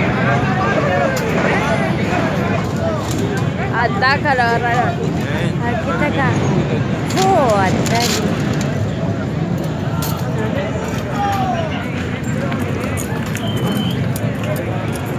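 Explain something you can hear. A crowd of people shout and talk loudly outdoors.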